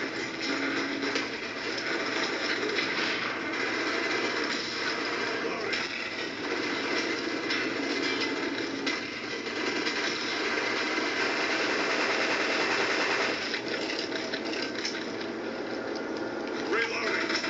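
Gunfire from a video game rattles through a television speaker.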